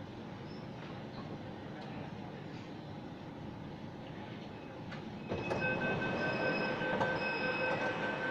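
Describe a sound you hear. A train rumbles steadily along.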